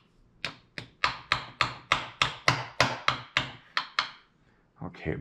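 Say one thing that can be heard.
A hammer taps quickly and sharply on wood.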